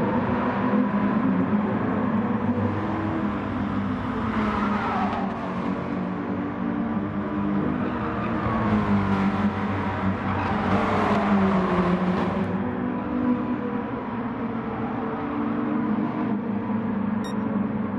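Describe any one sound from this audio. Racing car engines roar steadily and shift pitch as the cars speed around a track.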